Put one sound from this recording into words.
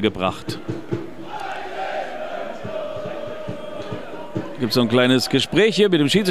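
A crowd of spectators chants and murmurs across an open-air stadium.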